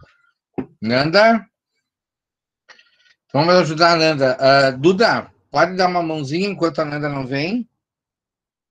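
A middle-aged man speaks calmly and clearly through a microphone on an online call.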